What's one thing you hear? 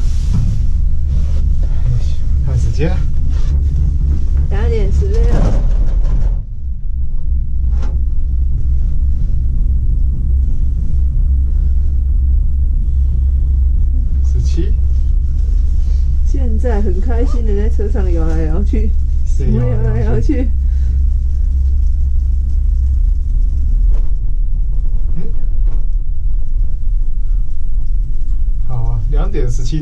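A gondola cabin rumbles steadily as it rides along its cable.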